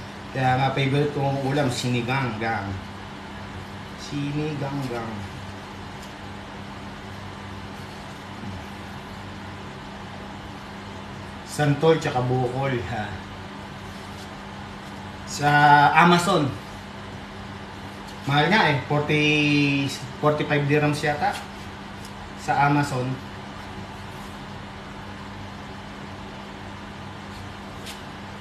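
A knife scrapes as it peels fruit.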